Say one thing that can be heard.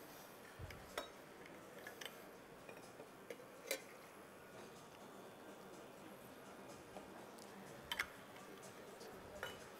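Metal jugs and cups clink and knock.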